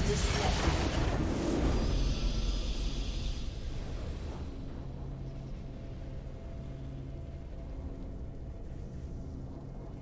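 Triumphant music plays with sustained tones.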